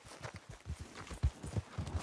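A horse's hooves clop on dirt.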